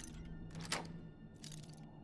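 A lock pick scrapes and clicks inside a lock.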